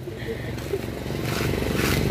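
Coconut husk fibres tear and rustle.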